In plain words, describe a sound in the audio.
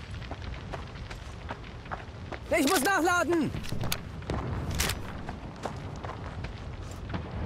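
Footsteps tread on dirt at a steady walking pace.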